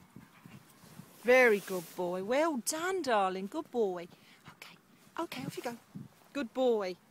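A dog whines close by.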